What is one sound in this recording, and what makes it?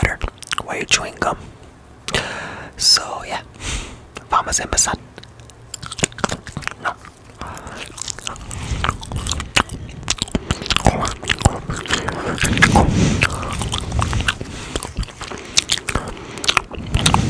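Mouth clicks and wet lip sounds come right up against a microphone.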